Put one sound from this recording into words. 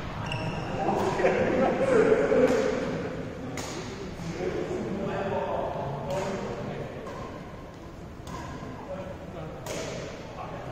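Shuttlecocks are struck with sharp pops of rackets in a large echoing hall.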